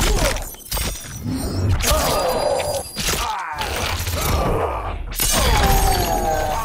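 Ice shatters with a loud crash.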